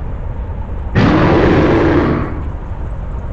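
A monstrous beast lets out a loud, deep roar.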